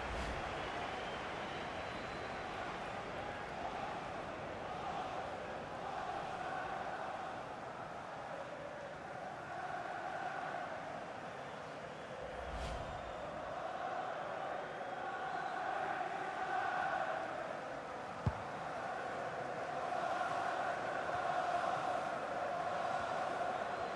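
A large stadium crowd chants and cheers steadily.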